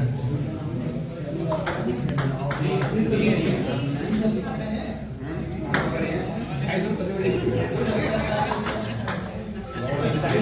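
A ping-pong ball clicks against paddles and the table in a quick rally.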